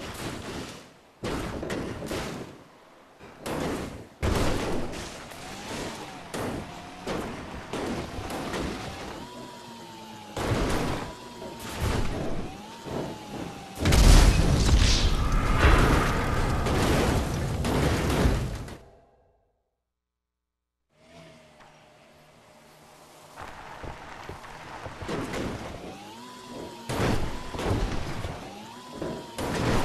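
Wheels bump and knock against rocks.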